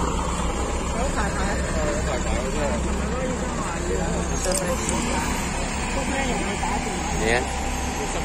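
Men and women in a small crowd chatter nearby.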